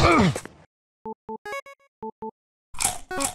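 Short electronic beeps sound as a menu is browsed.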